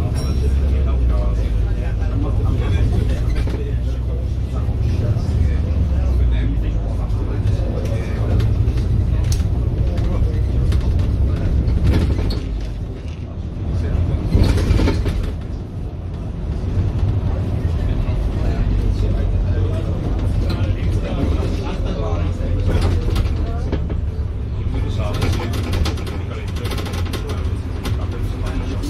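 A bus engine rumbles steadily as the bus drives along.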